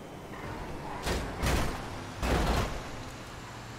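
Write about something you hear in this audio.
A car scrapes and bangs against a truck.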